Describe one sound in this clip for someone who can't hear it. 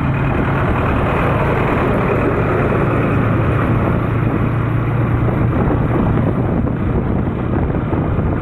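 Wind roars loudly against a moving motorcycle.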